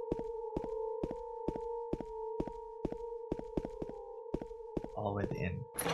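Footsteps thud at a steady pace.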